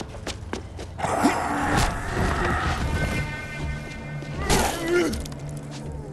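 A wooden bat thuds against a body.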